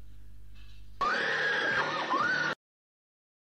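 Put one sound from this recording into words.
A woman screams in terror.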